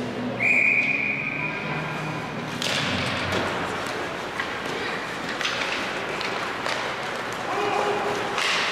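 Skates scrape and hiss across the ice in an echoing arena.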